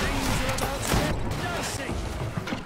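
A gun fires with a loud bang.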